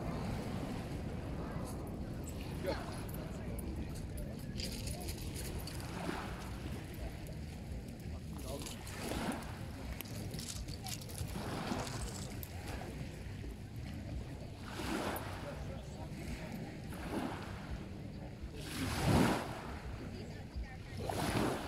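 Small waves lap gently at the shore.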